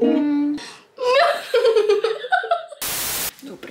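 Two young girls squeal and laugh excitedly.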